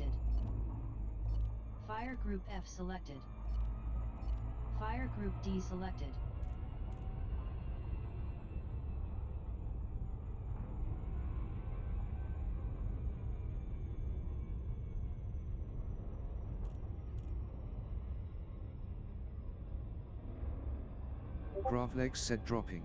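A spaceship engine hums with a deep, steady rumble.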